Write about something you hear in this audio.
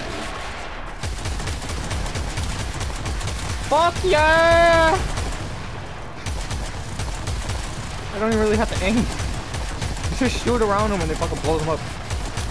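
A rapid-fire energy weapon shoots in quick bursts.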